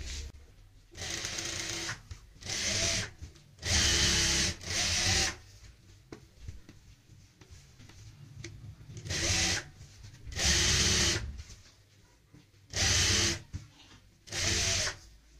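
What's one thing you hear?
A sewing machine runs in short bursts of fast stitching.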